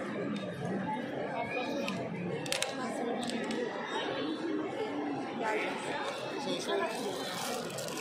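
A crowd of people murmurs and chatters in a large echoing hall.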